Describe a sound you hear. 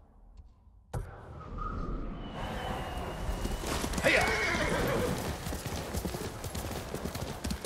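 A horse's hooves thud steadily as it gallops over grass.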